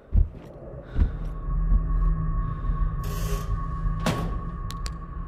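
A metal locker door creaks and swings open.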